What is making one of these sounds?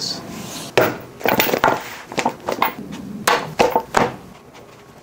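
Metal knives clink and slide against each other.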